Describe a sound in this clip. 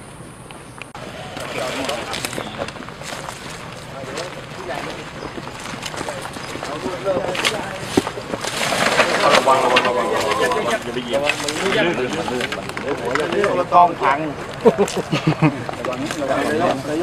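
Several men talk nearby in a group, outdoors.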